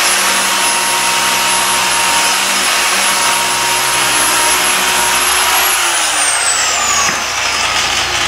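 A power polisher whirs loudly, then winds down.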